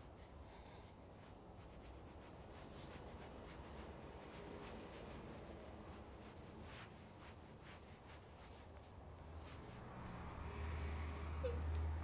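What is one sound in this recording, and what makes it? A cloth scrubs and wipes a wooden floor.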